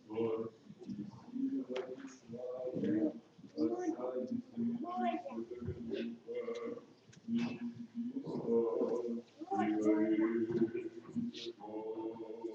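Several men chant together in a slow, steady melody, echoing in a large room.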